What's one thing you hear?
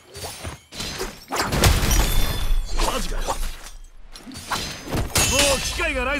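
Blades clash and slash in a fast fight.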